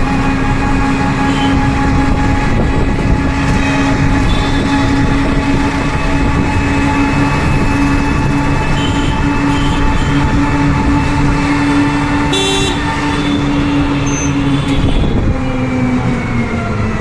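An auto-rickshaw engine hums steadily up close.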